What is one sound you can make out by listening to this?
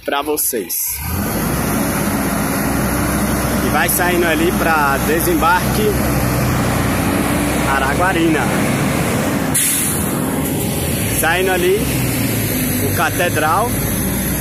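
A large bus engine rumbles loudly and steadily close by.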